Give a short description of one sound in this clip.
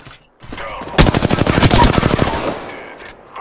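Rapid gunfire rattles in a quick burst.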